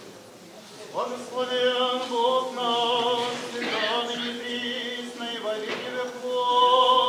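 Men chant together in a large echoing hall.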